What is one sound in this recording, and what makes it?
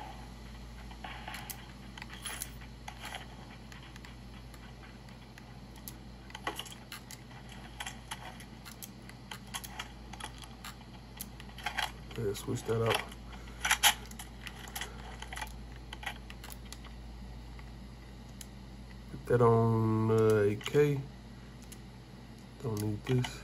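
Game sound effects play from a handheld console's small speakers.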